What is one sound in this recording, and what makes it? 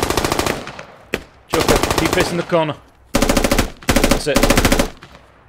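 Automatic gunfire rattles in rapid, close bursts.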